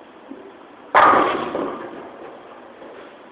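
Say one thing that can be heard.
Bowling pins crash and clatter loudly, echoing through a large hall.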